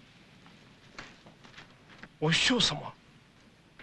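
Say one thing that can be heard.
Prayer beads click and rattle between rubbing hands.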